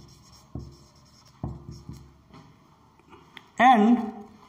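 A marker squeaks and taps on a whiteboard.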